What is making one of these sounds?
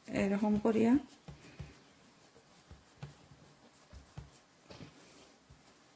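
A cloth rubs softly against a hard countertop.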